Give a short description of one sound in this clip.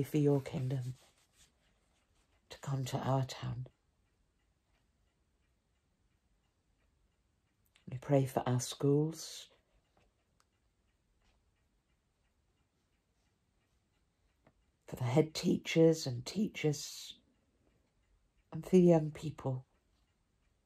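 An elderly woman speaks calmly in short phrases, close to a microphone, with pauses between them.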